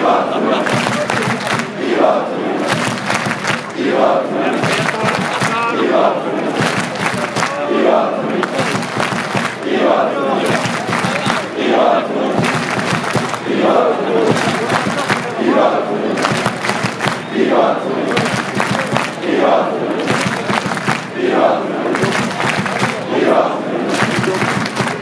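A large crowd of fans sings and chants loudly in rhythm throughout a big echoing stadium.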